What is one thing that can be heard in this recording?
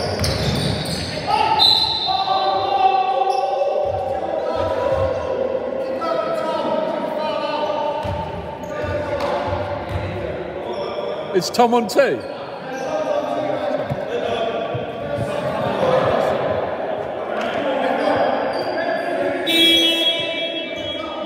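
Men call out to each other across a large echoing hall.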